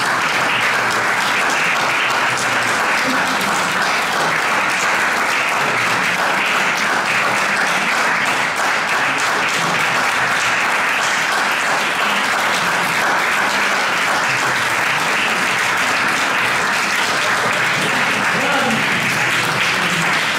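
An audience applauds steadily in an echoing hall.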